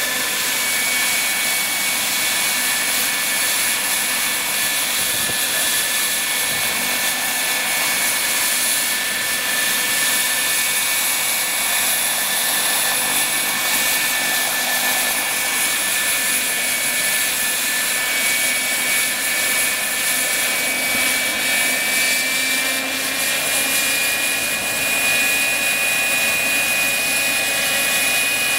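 A model helicopter's rotor blades whir and chop the air.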